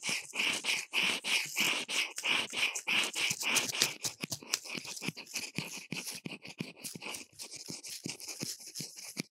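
Dry decorations rustle and crinkle close by as they are handled.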